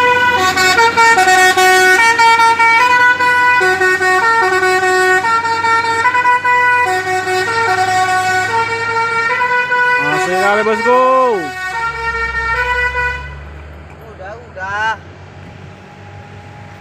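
A heavy truck engine rumbles as the truck drives slowly away.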